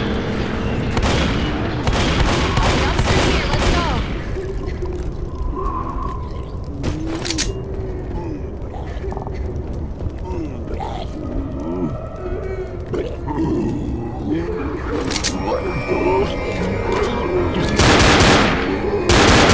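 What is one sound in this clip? A gun fires sharp, rapid shots.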